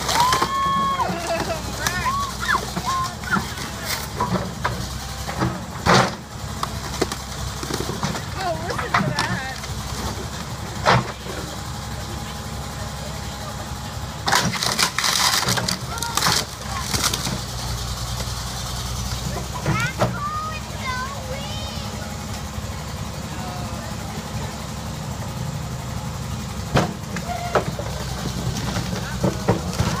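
Metal crunches and bangs as a digger bucket crushes a car.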